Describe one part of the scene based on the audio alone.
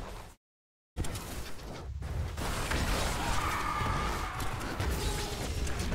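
Blasts of magic explode with heavy booms.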